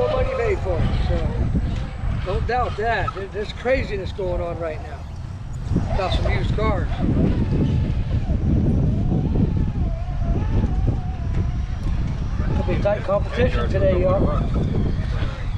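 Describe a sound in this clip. Several adults talk casually nearby.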